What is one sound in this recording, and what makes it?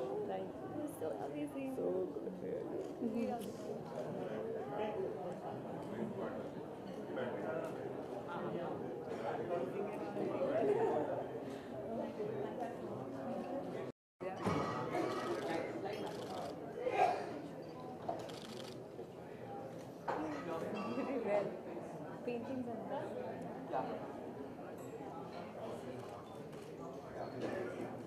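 Young women talk and laugh close by.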